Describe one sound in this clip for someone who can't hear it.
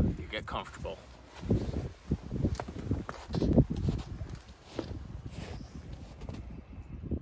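A sleeping bag rustles loudly close by.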